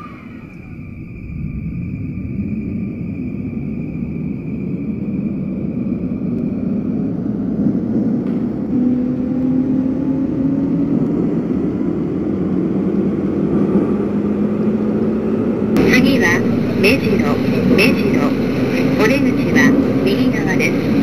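An electric train motor hums and rises in pitch as the train speeds up.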